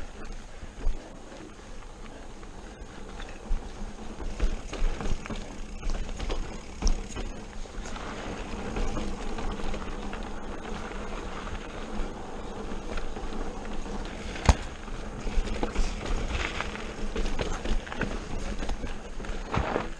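A mountain bike rattles and clunks over bumps and rocks.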